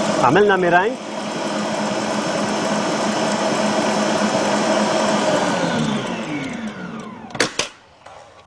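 A stand mixer whirs steadily, then winds down.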